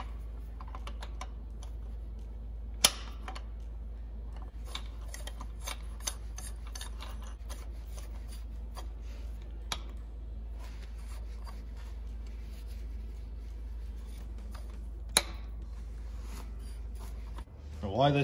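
Metal tools clink and click against metal parts.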